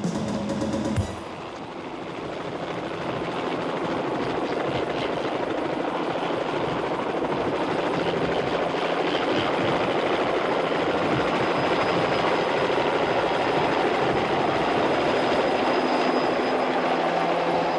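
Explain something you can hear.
A helicopter's rotor whirs loudly overhead, growing louder as it lifts off.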